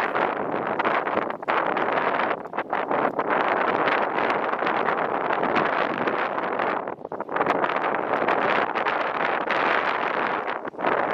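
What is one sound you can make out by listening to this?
Wind gusts loudly past the microphone.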